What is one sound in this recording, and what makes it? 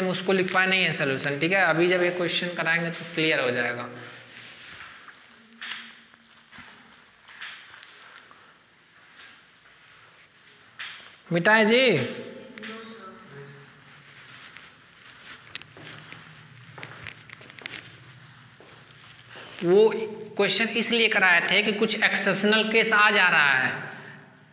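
A man explains calmly, close by, as if teaching.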